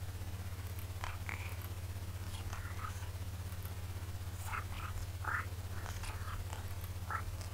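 A man speaks briefly and quietly through a headset microphone.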